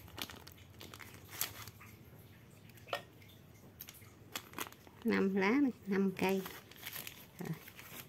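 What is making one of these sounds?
A plastic wrapper crinkles as it is handled.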